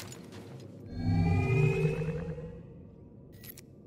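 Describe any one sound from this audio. A lightsaber ignites with a loud rising whoosh.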